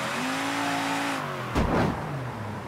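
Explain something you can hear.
A car engine hums and revs.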